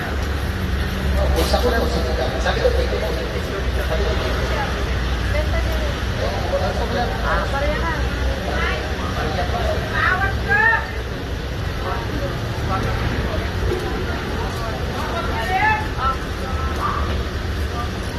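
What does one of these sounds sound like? Men and women chatter at nearby tables outdoors.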